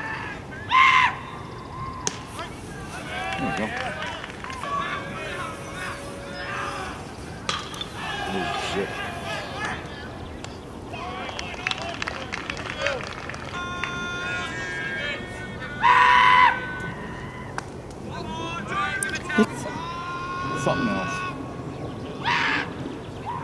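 Young men shout and cheer from a short distance outdoors.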